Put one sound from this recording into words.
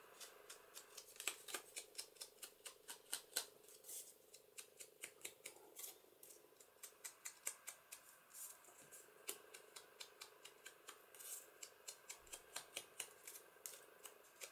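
A sponge dabs ink onto paper in quick, soft taps.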